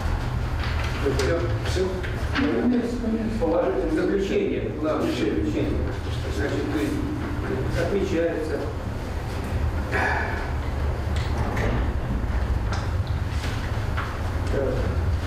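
An elderly man reads aloud calmly, close by.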